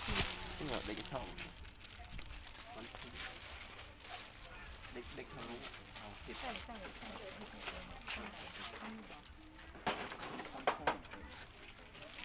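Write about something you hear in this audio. Plastic packaging crinkles in hands.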